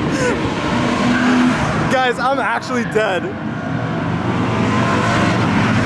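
A car engine drones steadily as a car drives out of a tunnel.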